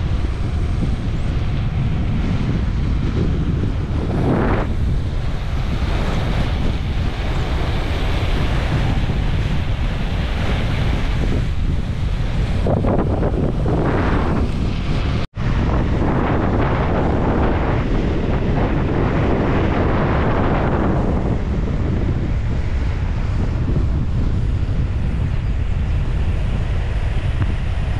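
Wind rushes loudly over the microphone outdoors.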